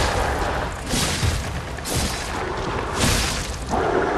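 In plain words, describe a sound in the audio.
A large beast growls and roars.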